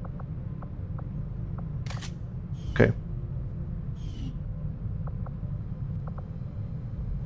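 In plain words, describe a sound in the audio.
Soft interface clicks sound as menu options are chosen.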